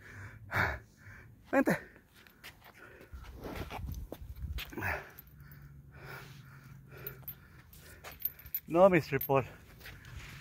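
A metal chain leash rattles and clinks.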